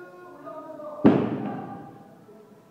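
Dumbbells drop onto the floor with a loud thud.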